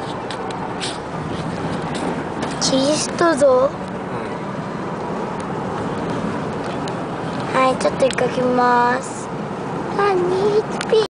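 A car engine hums steadily with road noise from inside the car.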